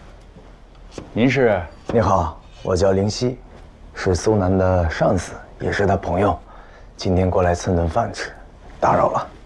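A second man answers calmly, close by.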